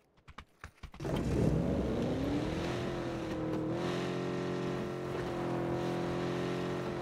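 A car engine starts, revs up and hums steadily as the car drives off.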